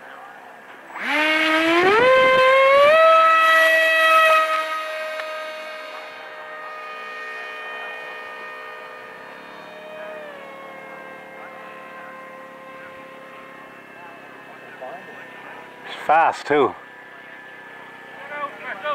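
A small jet engine spools up with a rising whine, roars loudly overhead, then slowly fades into the distance.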